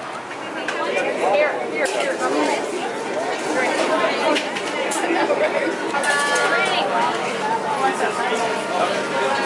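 Several adults talk at once in a busy, bustling room.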